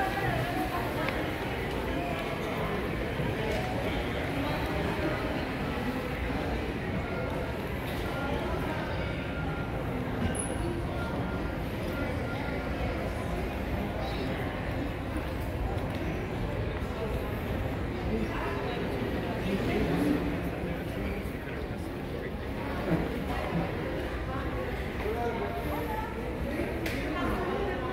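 Many people's voices murmur indistinctly in a large echoing hall.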